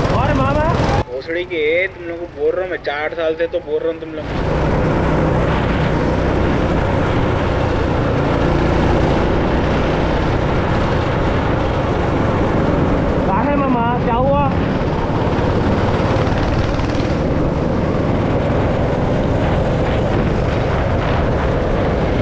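A go-kart engine buzzes and roars close by, rising and falling in pitch.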